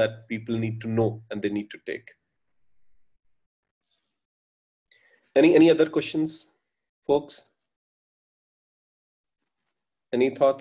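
A man speaks calmly over an online call, pausing between phrases.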